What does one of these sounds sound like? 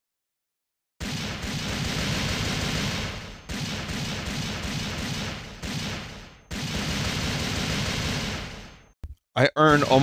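A pistol fires repeatedly.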